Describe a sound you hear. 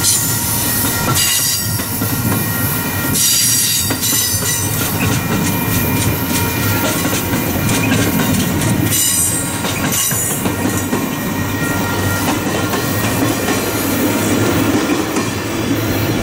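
Steel wheels squeal and hiss on the rails.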